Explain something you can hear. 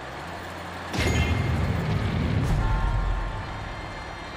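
A heavy blow lands with a loud crash and a deep rumble.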